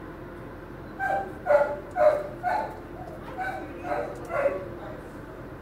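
A dog barks several times close by.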